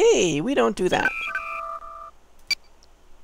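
Electronic menu tones beep as options are chosen.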